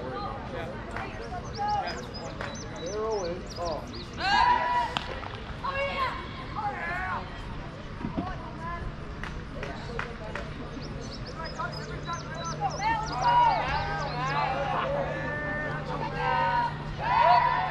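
Young players shout and cheer from the sidelines outdoors.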